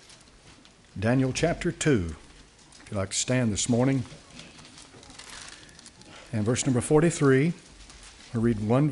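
An elderly man speaks loudly and with passion through a microphone in a large room.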